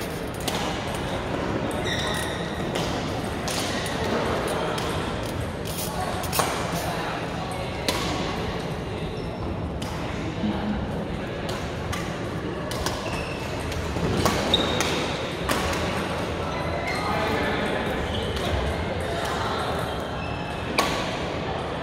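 A crowd of players talks and calls out in the background.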